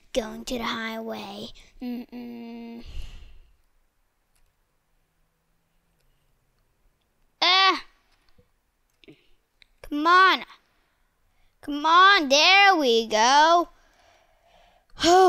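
A young boy talks with animation into a headset microphone.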